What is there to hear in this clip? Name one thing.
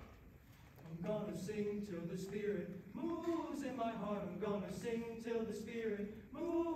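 A choir sings together in a large echoing hall.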